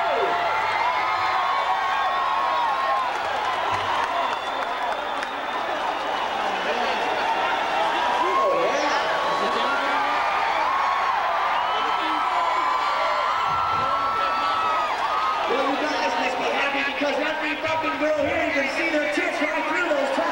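A huge stadium crowd cheers, whistles and chants loudly, echoing in the open air.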